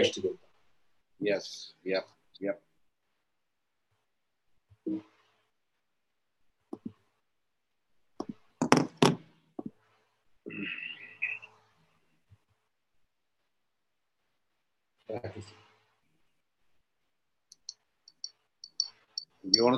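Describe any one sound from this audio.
A man speaks calmly in short phrases over an online call.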